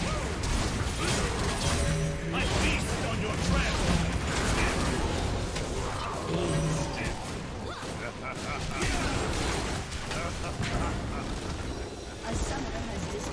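Game spells crash and explode in a chaotic battle.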